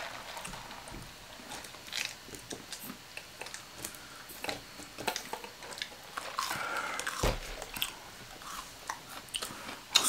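A woman chews food with soft crunching.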